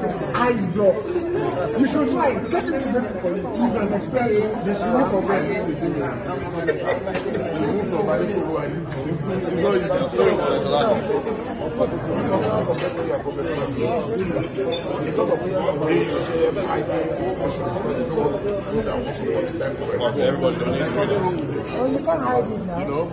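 Other men talk over each other in the background.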